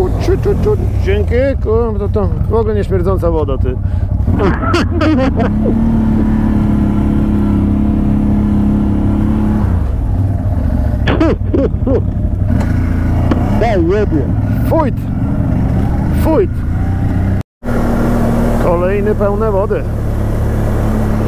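A quad bike engine revs up and down in bursts.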